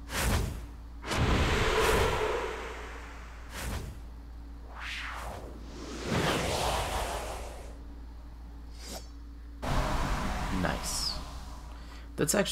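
A swirling gust of wind whooshes.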